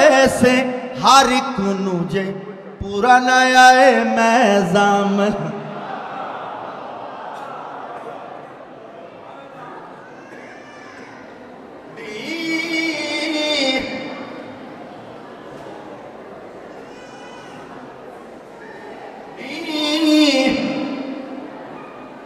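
A man recites loudly and with emotion into a microphone, heard through loudspeakers in an echoing hall.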